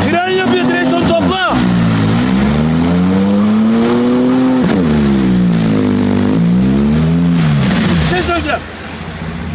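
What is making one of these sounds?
An engine revs hard, rising and falling in pitch.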